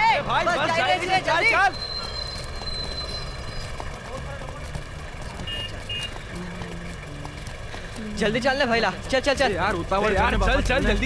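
A bus engine idles nearby.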